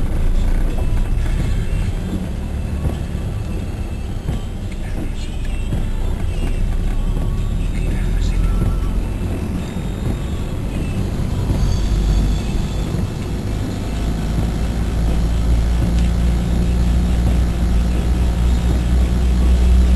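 Windshield wipers swish across wet glass.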